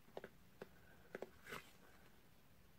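Fingers tap and rustle against a small cardboard box.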